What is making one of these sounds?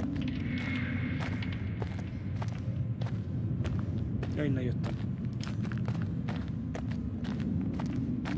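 Footsteps crunch slowly on leaves and twigs.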